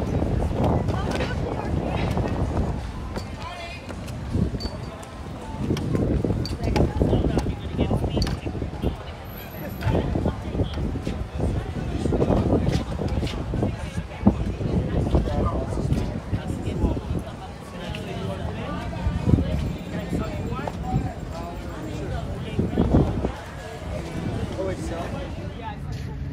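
Adults chat nearby in an outdoor crowd.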